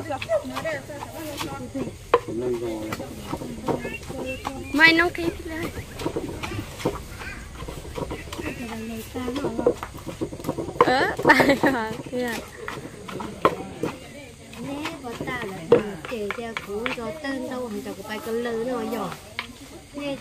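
A pestle pounds and knocks in a mortar.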